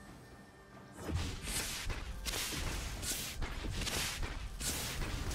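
Game spells whoosh and crackle in a quick fight.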